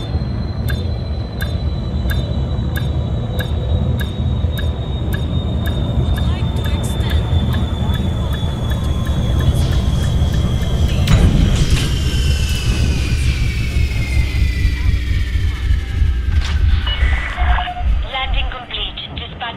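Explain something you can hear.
A spaceship engine hums with a deep, steady rumble.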